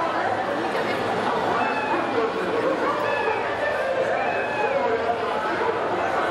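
A crowd chatters and calls out outdoors.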